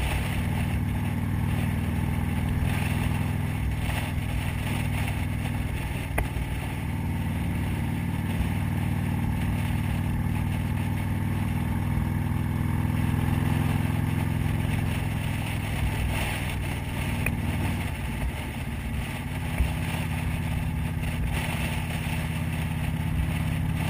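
A motorcycle engine hums steadily while riding along a road.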